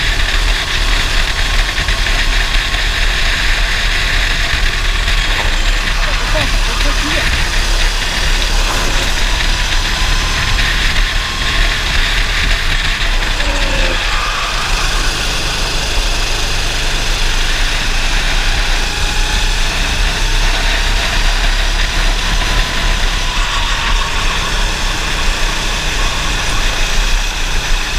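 Wind buffets the microphone of an open kart at speed.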